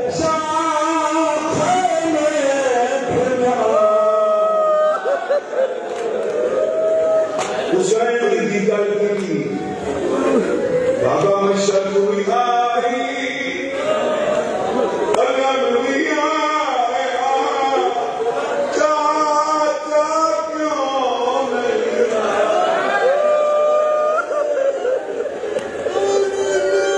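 A man chants loudly into a microphone through loudspeakers, in an echoing hall.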